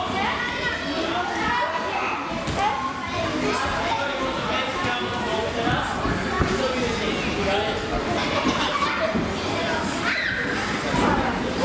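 Feet thump on a trampoline as a girl bounces and lands.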